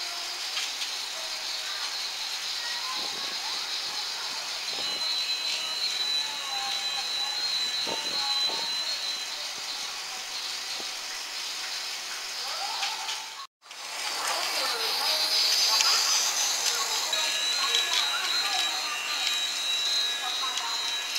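A toy train's small motor whirs steadily as it rattles along its track.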